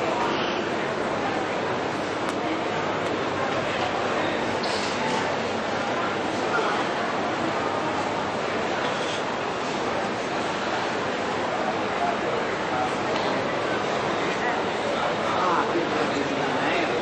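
A crowd murmurs in a busy echoing indoor hall.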